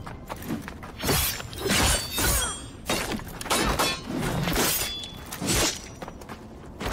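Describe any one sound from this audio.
Metal blades clash and ring in a sword fight.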